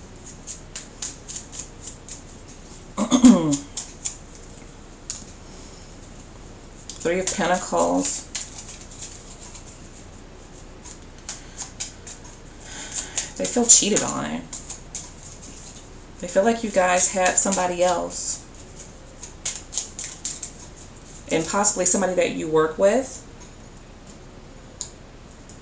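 Playing cards are shuffled with quick, soft flicking clicks.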